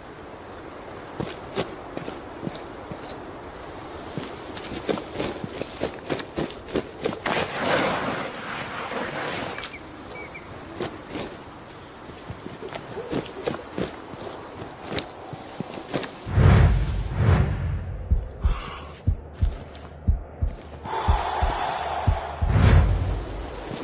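Footsteps crunch through grass and brush.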